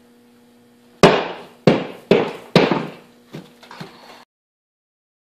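A wooden mold flask knocks hard against a metal drum several times.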